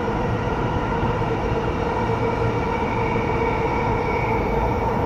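An electric train rumbles steadily with a humming motor.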